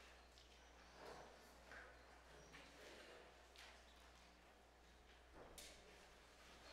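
Sheet music pages rustle softly.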